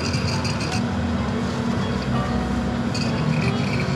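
Coffee pours into a paper cup.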